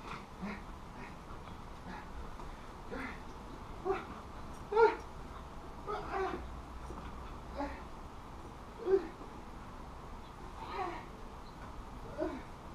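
A dog barks in short bursts outdoors.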